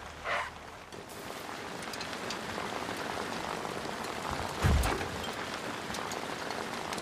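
Tyres crunch and rustle over a dirt track.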